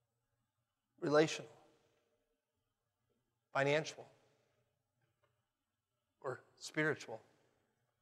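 A man speaks forcefully in short bursts through a microphone in a reverberant hall.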